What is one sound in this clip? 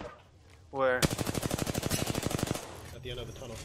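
A rapid-fire gun shoots a quick burst.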